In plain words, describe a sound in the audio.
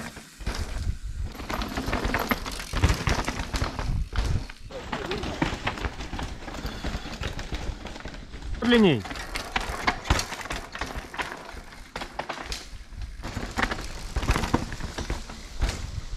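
A bike's frame and chain rattle over bumps.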